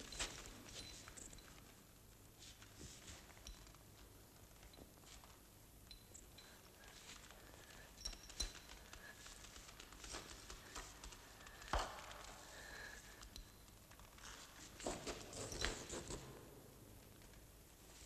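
A rope scrapes against rock.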